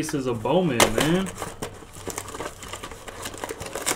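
A foil card pack rips open.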